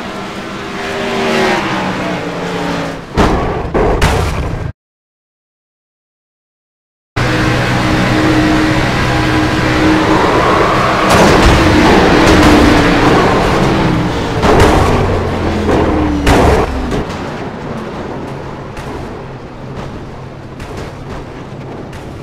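Cars crash and scrape together with loud bangs.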